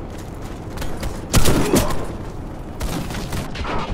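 Gunshots ring out in a game.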